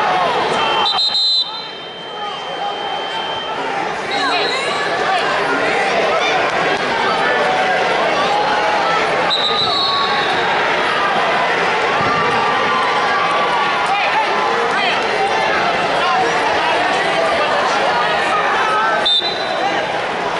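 A referee's whistle blows in short sharp blasts.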